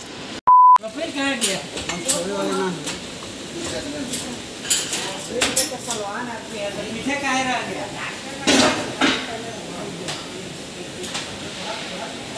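A heavy metal pipe clanks against metal grating.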